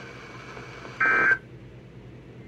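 A two-way radio gives a short beep.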